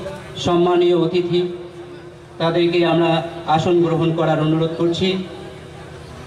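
A man speaks loudly into a microphone over a loudspeaker, drawing out his words.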